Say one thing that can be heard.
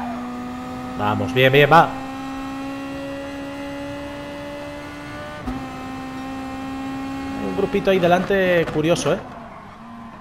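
A race car engine revs up and down sharply as gears shift.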